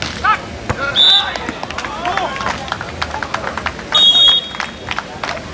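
A referee's whistle blows shortly.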